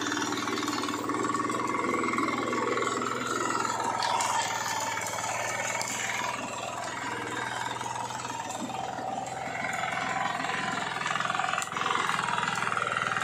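A small engine runs with a steady chugging drone throughout.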